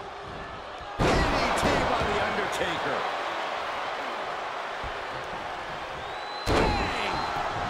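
A body slams heavily onto a ring mat with a loud thud.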